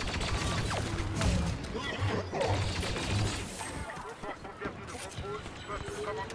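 Explosions boom with a low rumble.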